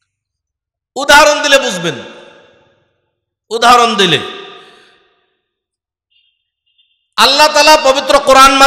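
A middle-aged man speaks with animation into a microphone, his voice booming through loudspeakers with echo.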